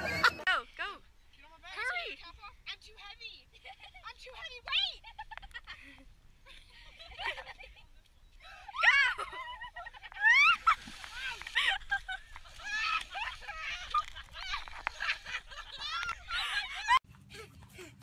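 Young women shout and laugh outdoors.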